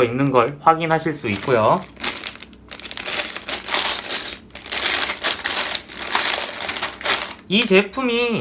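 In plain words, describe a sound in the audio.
Plastic bags crinkle and rustle as they are handled.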